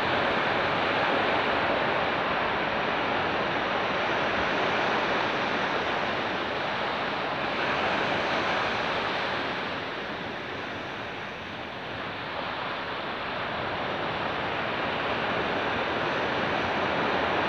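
Wind rushes across the microphone outdoors.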